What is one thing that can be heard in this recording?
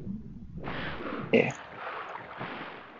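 A figure splashes out of water.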